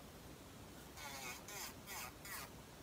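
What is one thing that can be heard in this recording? An electric nail file whirs in short bursts.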